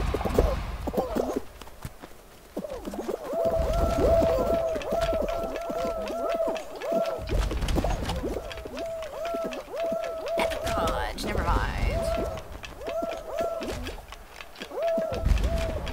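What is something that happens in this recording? Small cartoon figures patter and bump as they run in a crowd.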